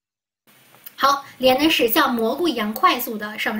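A young woman speaks clearly into a close microphone, explaining with animation.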